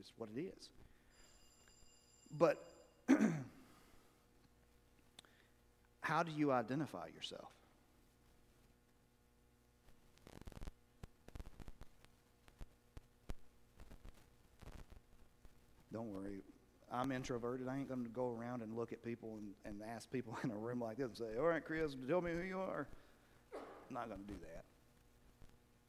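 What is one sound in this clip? A man speaks calmly into a microphone in a large echoing hall, with pauses.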